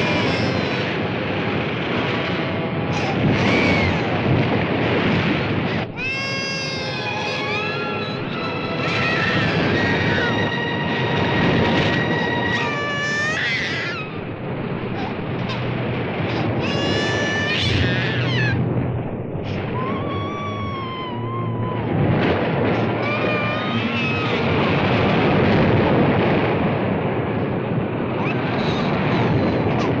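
Waves crash and churn against the shore.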